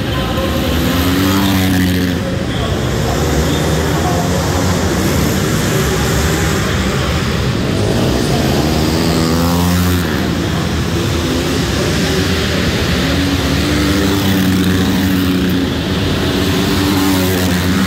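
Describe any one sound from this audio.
A dirt bike engine roars up close as it passes by.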